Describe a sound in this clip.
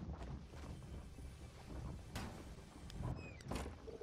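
A wooden door bumps shut.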